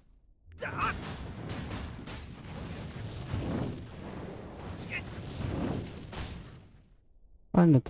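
Magical blasts whoosh and crackle during a fight.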